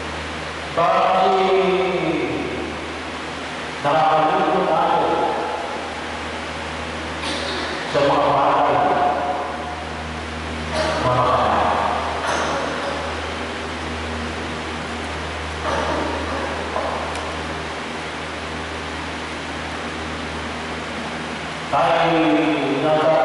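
A man chants in short phrases into a microphone, heard through loudspeakers in an echoing hall.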